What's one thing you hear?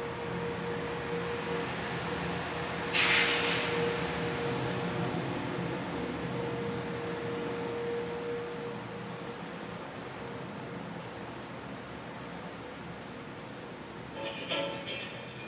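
Laptop keys click softly as someone types.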